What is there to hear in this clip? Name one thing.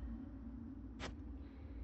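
A soft menu click sounds.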